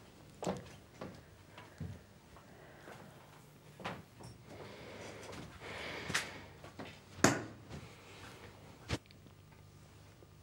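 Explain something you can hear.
A man plays a piano softly.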